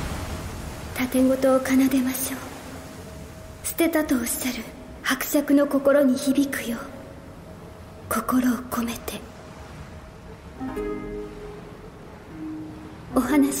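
A young woman sings softly and slowly.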